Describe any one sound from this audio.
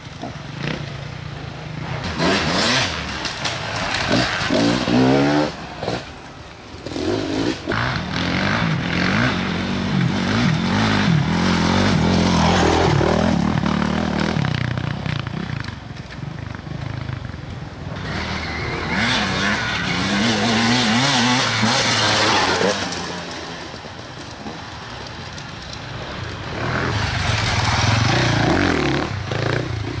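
A dirt bike engine revs and roars up and down nearby outdoors.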